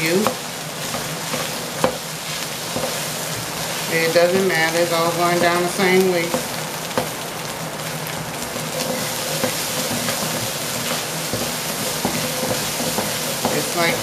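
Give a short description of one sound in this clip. A wooden spatula scrapes and taps against a pan.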